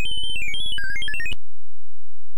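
A chiptune jingle plays with beeping tones.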